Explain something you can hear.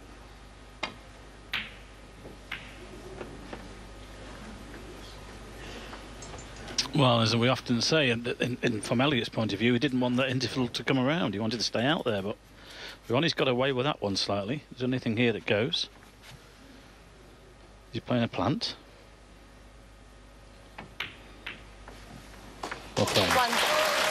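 Snooker balls click sharply as a cue strikes them.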